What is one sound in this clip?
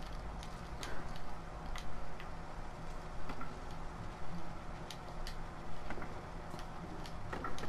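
Footsteps creak softly on wooden floorboards.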